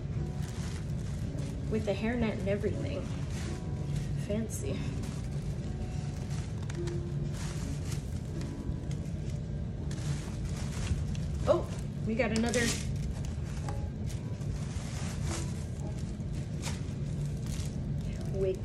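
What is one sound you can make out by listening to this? Fabric rustles and brushes close to a microphone.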